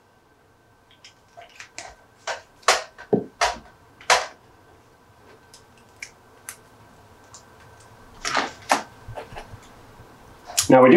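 Small plastic parts click and tap as they are handled.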